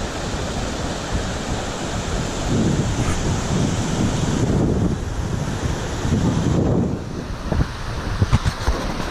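Water rushes over a weir nearby.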